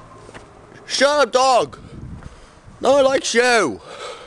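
A young boy lets out loud, high yelps close by.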